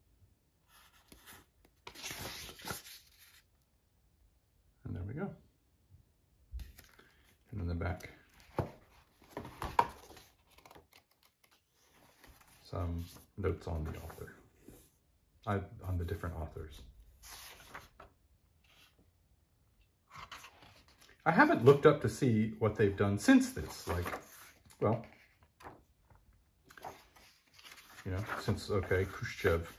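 Paper pages of a book rustle and flutter as they are turned by hand.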